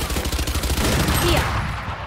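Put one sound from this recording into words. Rapid gunshots crack nearby.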